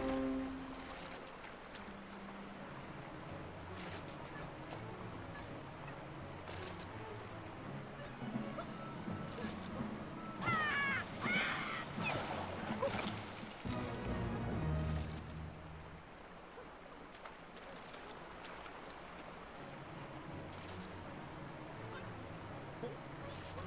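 Rushing water roars steadily.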